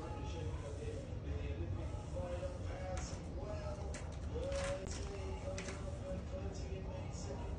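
A hand softly strokes a dog's fur.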